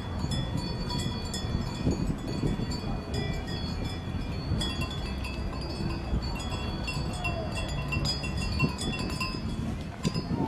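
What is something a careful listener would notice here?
Cowbells clank and ring nearby.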